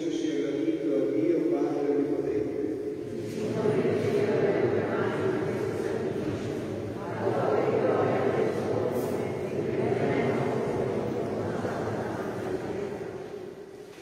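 An elderly man chants slowly through a microphone in a large echoing hall.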